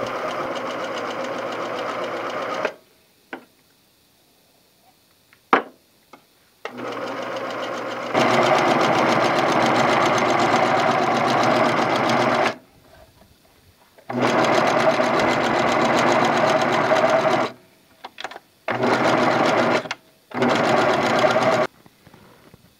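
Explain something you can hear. A sewing machine runs with a fast, steady whir and stops and starts in bursts.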